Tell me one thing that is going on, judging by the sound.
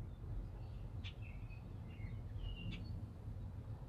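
Soft, bright game chimes twinkle.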